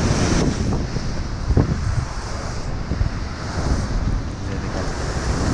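Rough waves crash and churn against a sea wall.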